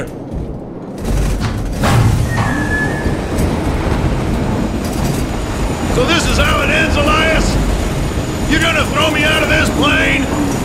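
Wind roars loudly through an open aircraft door.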